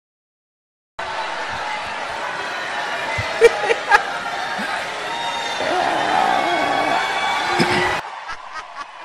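A crowd cheers and claps in a large hall.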